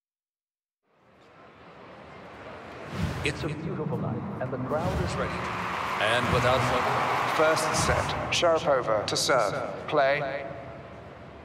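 A large crowd applauds and cheers in a big arena.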